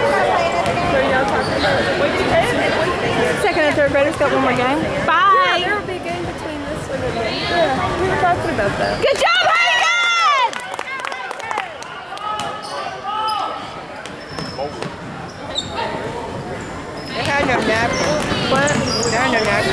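A crowd of spectators talks and cheers loudly in an echoing gym.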